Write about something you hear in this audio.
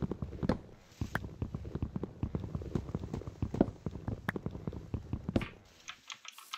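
Rapid knocks of wood being chopped tap on and on, then stop.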